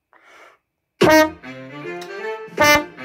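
A trombone plays a quick run of loud notes up close.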